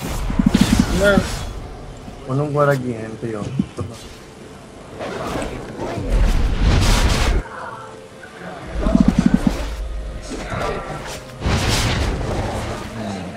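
Game spells whoosh and crackle during a fight.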